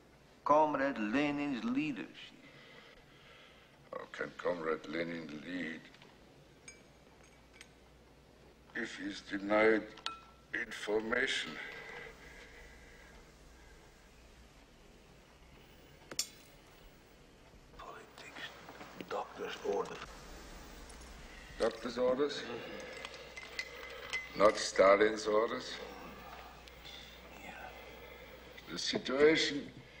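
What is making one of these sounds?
A middle-aged man speaks calmly and quietly.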